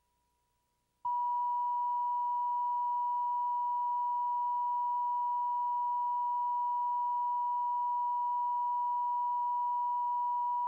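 A steady high test tone beeps without a break.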